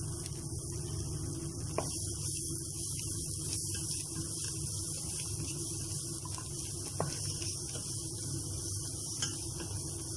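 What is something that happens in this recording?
A wooden spoon scrapes and stirs against a metal pan.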